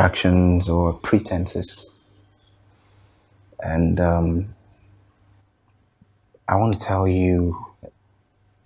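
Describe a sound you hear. A man speaks calmly and quietly close by.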